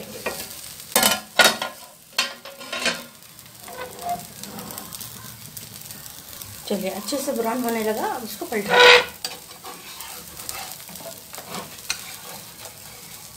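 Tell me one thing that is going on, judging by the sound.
Batter sizzles softly on a hot pan.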